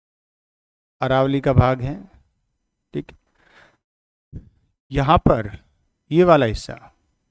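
A middle-aged man speaks clearly into a clip-on microphone, explaining in short bursts.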